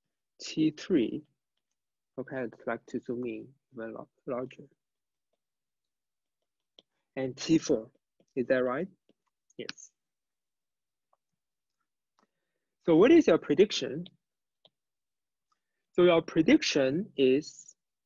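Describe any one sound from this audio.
A young man speaks calmly into a close microphone, pausing between phrases.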